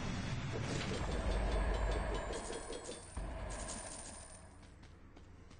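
Loud bursts of video game combat effects crash and crackle.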